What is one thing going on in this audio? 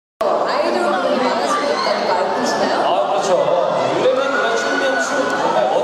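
A crowd of young women screams and cheers nearby.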